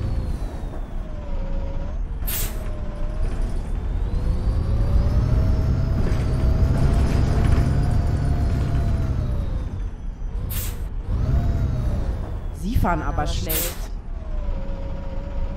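A bus engine hums and rises in pitch as it speeds up, then drops as it slows.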